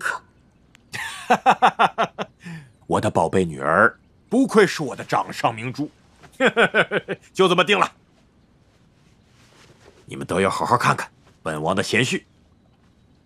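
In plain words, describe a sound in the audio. A middle-aged man speaks warmly and proudly, close by.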